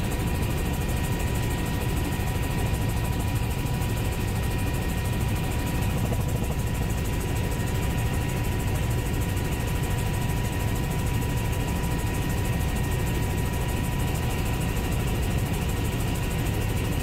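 A helicopter's engine and rotor drone loudly and steadily from inside the cabin.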